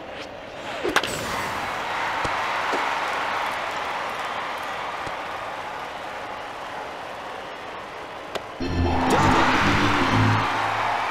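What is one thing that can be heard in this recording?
A stadium crowd cheers.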